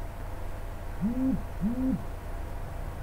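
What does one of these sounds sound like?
An elderly man speaks briefly into a microphone.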